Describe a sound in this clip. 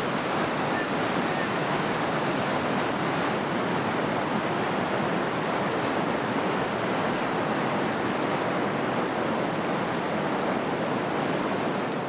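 Whitewater rapids roar loudly and steadily.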